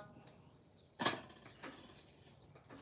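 A metal object clanks down onto a workbench.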